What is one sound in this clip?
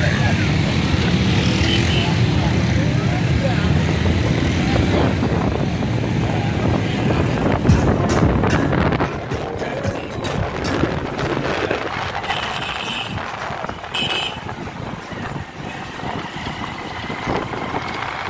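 A motorbike engine rumbles.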